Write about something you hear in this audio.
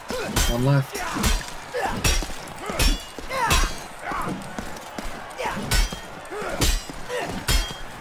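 Swords clash and strike armour in rapid blows.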